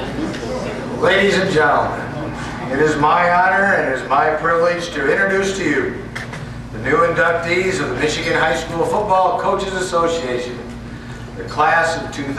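A middle-aged man speaks through a microphone and loudspeakers in a large room.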